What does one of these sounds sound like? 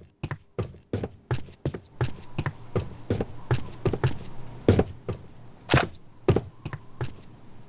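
Footsteps thud steadily on hollow wooden boards.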